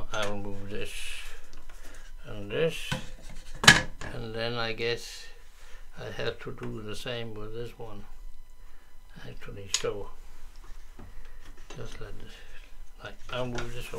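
Plastic clamps click and rattle as they are handled.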